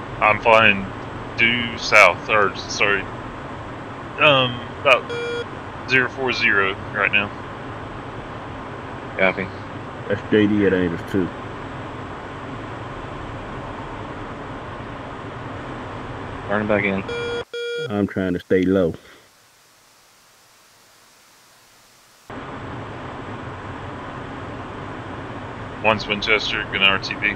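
A jet engine hums steadily.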